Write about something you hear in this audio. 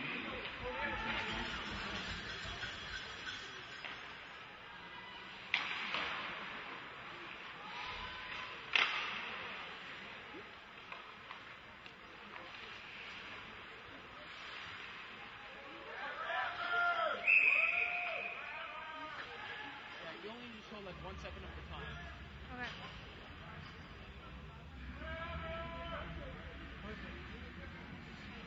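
Skates scrape across the ice in a large echoing rink.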